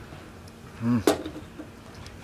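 A glass bottle is set down on a hard surface with a clink.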